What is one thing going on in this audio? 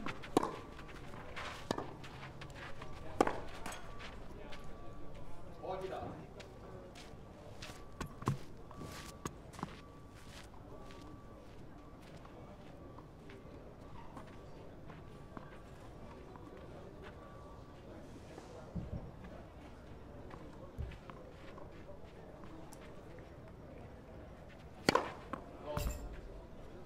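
A tennis ball is struck hard with a racket.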